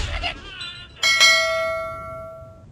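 A bright chime rings and slowly fades.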